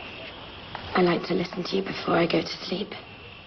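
A woman speaks quietly, close by.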